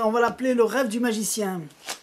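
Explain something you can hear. Playing cards tap on a table.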